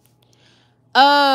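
A young woman wails a long high note.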